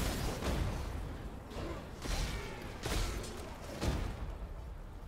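Magic blasts crackle and burst in quick succession.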